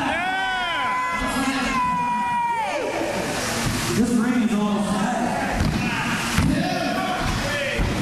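Bodies slam onto a wrestling ring's mat with heavy thuds.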